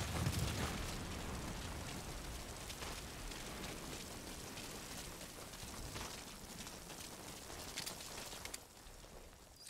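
Footsteps run quickly over a dirt track.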